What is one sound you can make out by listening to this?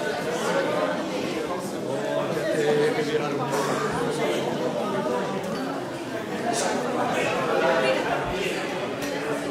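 A crowd of people chatters loudly all around in a noisy, echoing room.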